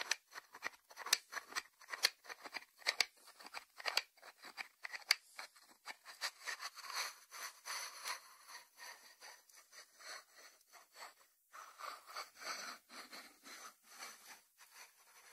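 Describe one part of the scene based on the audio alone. Fingertips tap on a ceramic lid.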